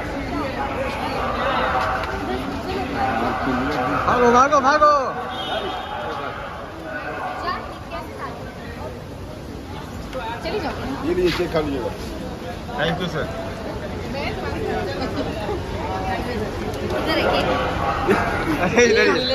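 A crowd of men chatter and call out nearby in a busy echoing hall.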